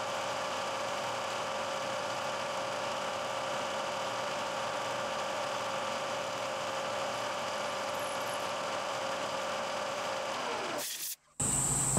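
A milling machine whirs steadily as its cutter grinds through metal.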